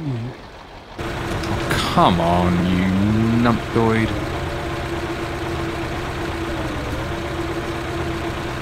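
A heavy diesel engine hums steadily.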